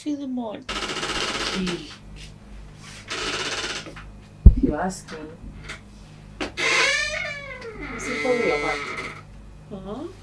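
A young woman speaks sharply in reply.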